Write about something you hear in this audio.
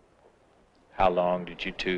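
A man speaks suddenly and loudly up close.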